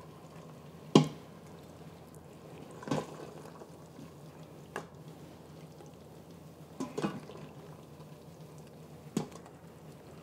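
A spoon knocks and scrapes against a metal pot.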